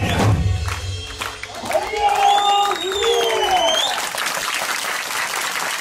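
Drummers beat hand drums in rhythm.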